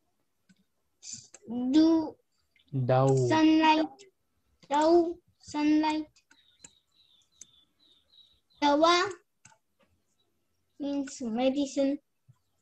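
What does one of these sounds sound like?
A young child says short words slowly through an online call.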